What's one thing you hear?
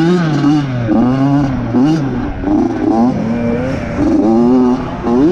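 A dirt bike engine revs loudly up and down close by.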